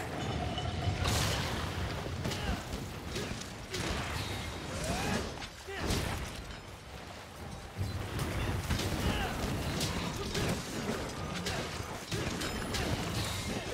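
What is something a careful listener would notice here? Weapon strikes and explosions crash and bang in rapid bursts.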